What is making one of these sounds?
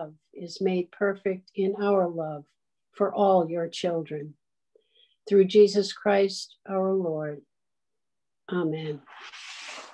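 An elderly woman speaks calmly through an online call.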